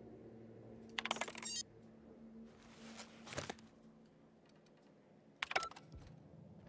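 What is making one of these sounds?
A computer terminal beeps and whirs as options are selected.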